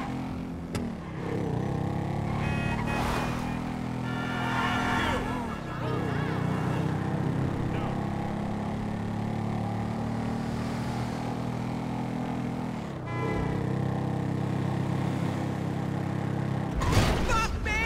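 A motorbike engine hums steadily and revs as the bike rides along.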